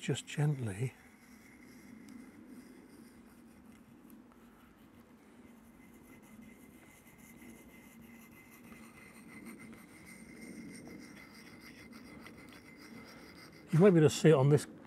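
A blade scrapes steadily across a sharpening stone.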